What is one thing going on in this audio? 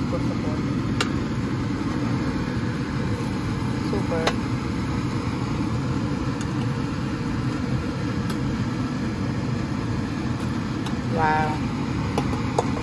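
A metal spatula scrapes and clicks against a metal tray.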